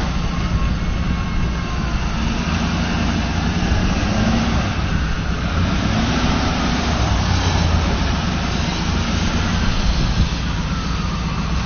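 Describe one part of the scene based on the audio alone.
A pickup truck engine rumbles.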